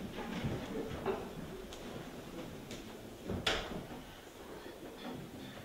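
Footsteps thud softly across a wooden floor in a room with some echo.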